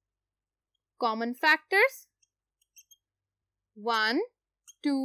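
A woman speaks calmly and clearly nearby, in short phrases.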